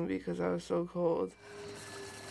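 A young woman speaks quietly and close to a microphone.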